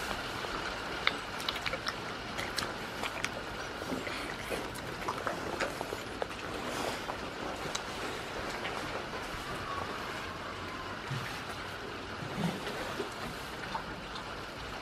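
Goats chew and crunch food close by.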